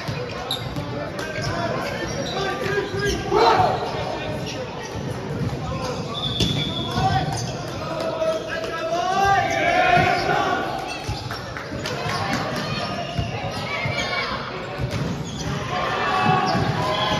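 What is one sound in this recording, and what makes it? Sneakers squeak on the wooden court.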